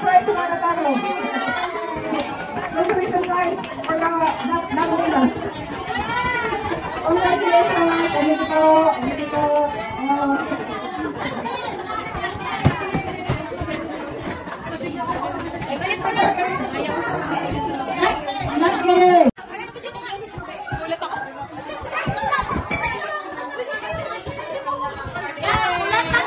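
A lively group of women and men chatter and laugh close by.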